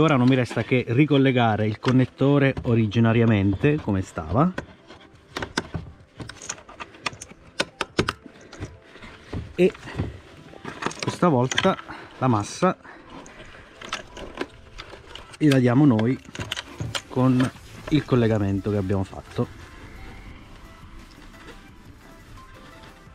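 Plastic connectors and wires click and rustle under handling.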